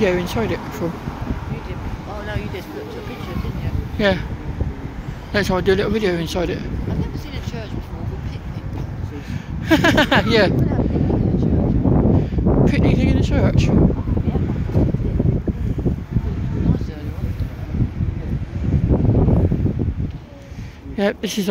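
Wind rumbles over the microphone outdoors.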